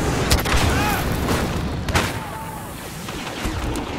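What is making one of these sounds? Laser blasters fire in sharp shots.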